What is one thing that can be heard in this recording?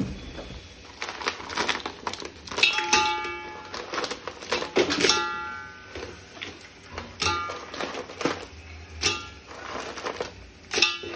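Shells clatter and clink against a metal pot as crabs and mussels are dropped in.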